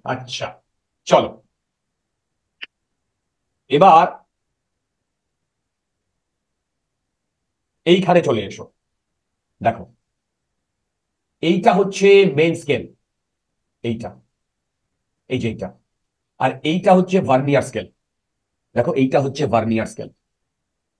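A young man speaks calmly and clearly, in short bursts with pauses, close to a microphone.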